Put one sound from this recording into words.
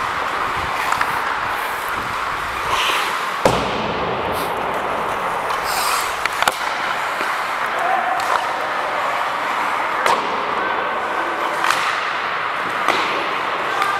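Hockey sticks clack sharply against the puck and the ice.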